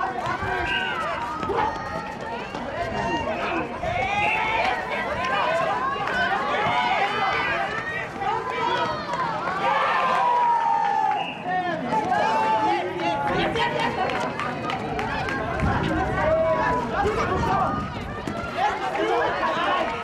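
Young women call out and shout to each other.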